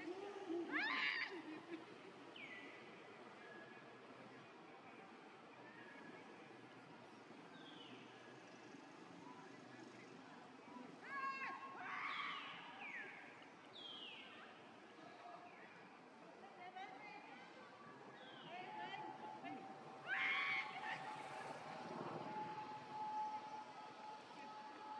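A baby monkey squeals in short, high cries.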